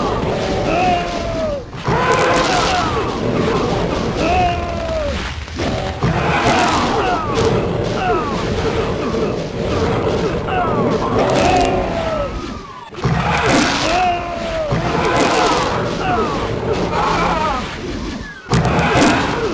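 Monsters roar and growl in a dense, chaotic crowd.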